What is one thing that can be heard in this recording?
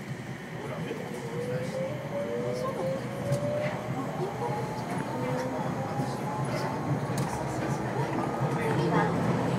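A train's motor whines, rising in pitch.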